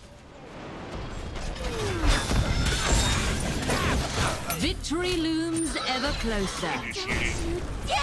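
Magic blasts whoosh and crackle in a fantasy battle.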